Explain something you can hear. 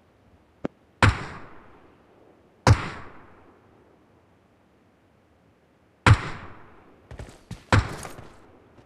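Rifle shots crack out one at a time, each followed by a rolling echo.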